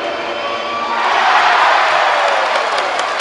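A large crowd erupts in a loud cheer.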